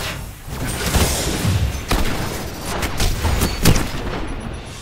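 An explosion bursts with a crackle.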